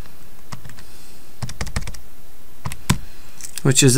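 Calculator buttons click as they are pressed.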